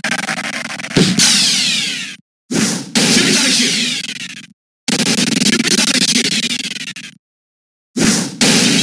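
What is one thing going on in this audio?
A flying disc whooshes and smacks hard against a wall.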